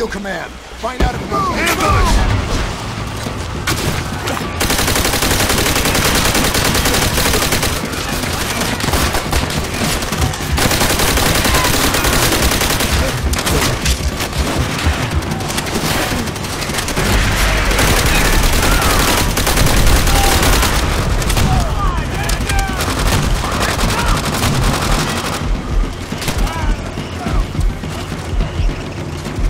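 Rifle shots crack in a loud war game.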